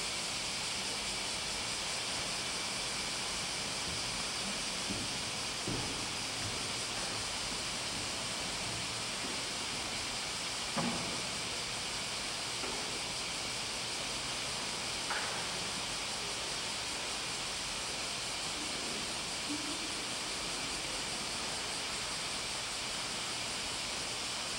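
A seated congregation shifts quietly in a large echoing hall, with an occasional soft knock.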